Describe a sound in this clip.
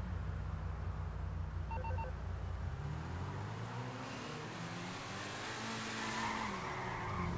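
A sports car engine idles with a deep rumble, then revs up and rises in pitch as the car pulls away.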